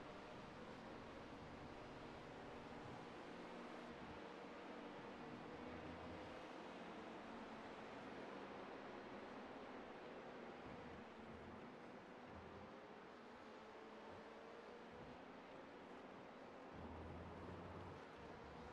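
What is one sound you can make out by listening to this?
A racing car engine roars as it speeds past.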